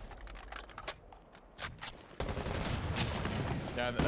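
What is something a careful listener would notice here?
An explosion blasts through a wall.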